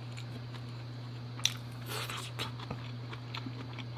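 A young woman chews food close to a microphone.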